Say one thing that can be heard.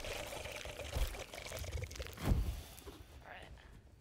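A creature bursts apart in a soft whoosh of smoke.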